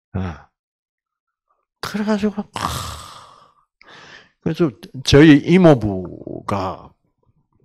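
An elderly man speaks with animation through a microphone and loudspeakers.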